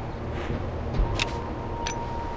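A game menu button clicks.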